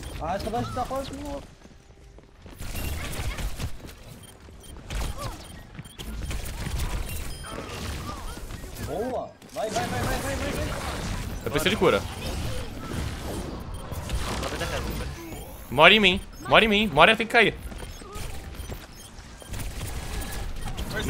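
Game pistols fire in rapid bursts.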